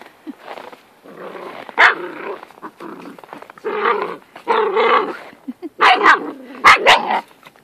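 Two small dogs growl and snarl playfully at close range.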